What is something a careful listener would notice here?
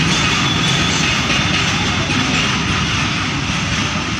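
Freight wagons rumble and clank along a track.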